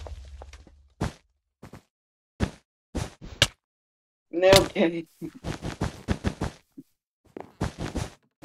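Blocks are placed with quick soft clicks.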